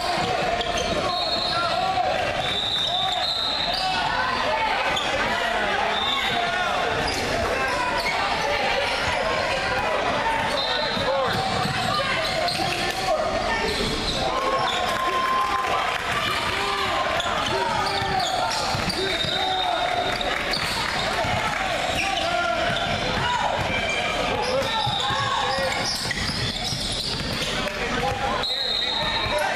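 Many voices chatter and call out in a large echoing hall.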